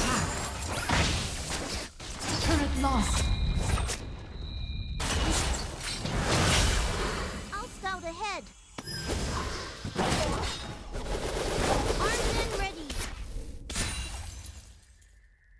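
Video game sword strikes clash repeatedly.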